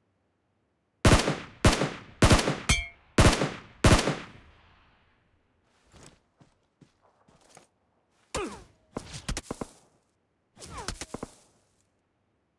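Loud gunshots fire in quick succession and echo away.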